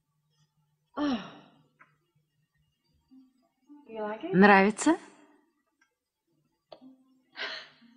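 An older woman speaks with animation, close by.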